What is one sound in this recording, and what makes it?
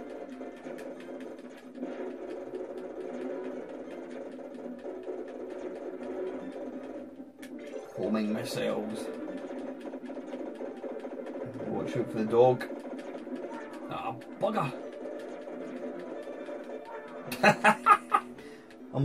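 Electronic game music plays steadily.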